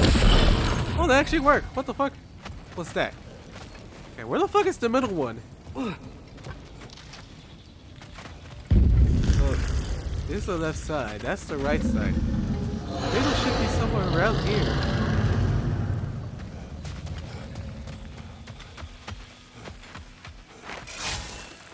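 Heavy footsteps crunch over stone and dirt.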